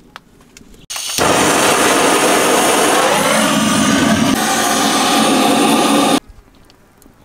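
A gas torch hisses and roars.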